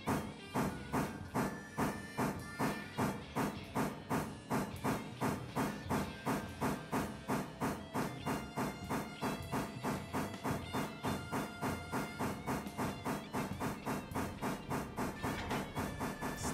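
A steam locomotive chuffs steadily, the beats slowly quickening.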